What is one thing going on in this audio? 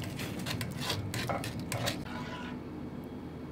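A spoon scrapes and taps against a metal strainer.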